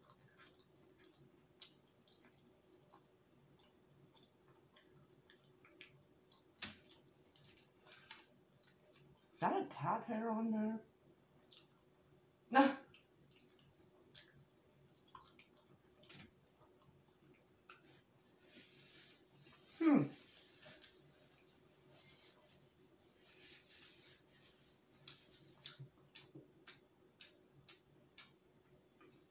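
Food crunches and squelches as a woman chews close by.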